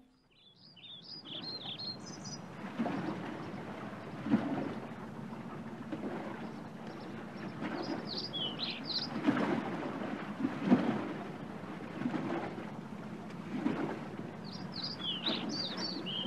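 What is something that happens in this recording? Waves wash gently against a shore.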